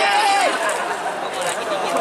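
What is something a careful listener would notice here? A young woman laughs into a microphone.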